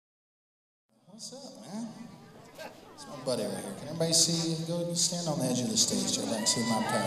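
A man sings into a microphone over a loudspeaker in a large hall.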